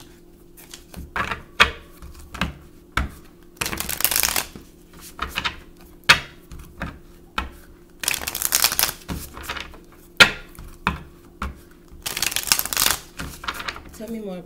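Playing cards tap and knock on a wooden table.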